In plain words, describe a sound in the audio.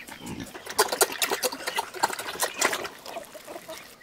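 Pigs slurp and chomp noisily at a trough.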